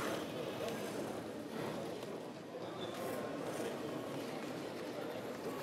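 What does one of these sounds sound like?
Small robots whir softly as they move their arms.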